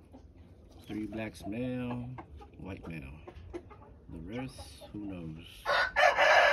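A young rooster crows in a cracking voice.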